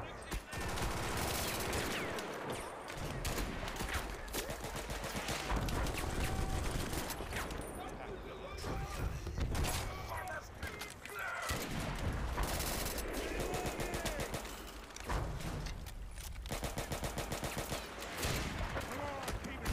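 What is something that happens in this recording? Explosions boom in heavy, deep blasts.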